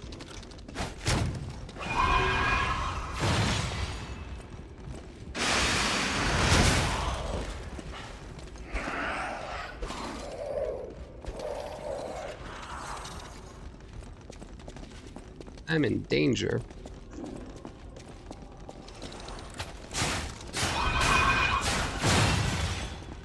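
Metal weapons clash with loud ringing hits.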